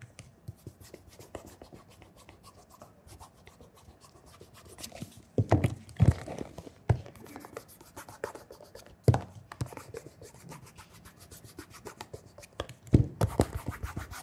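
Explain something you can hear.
A cloth rubs polish onto a leather shoe with soft, quick strokes.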